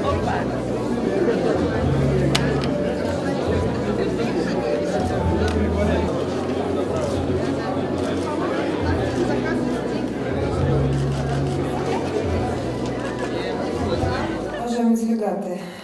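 A crowd of people murmurs indoors.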